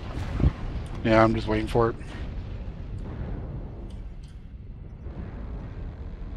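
Laser weapons fire with electric zaps.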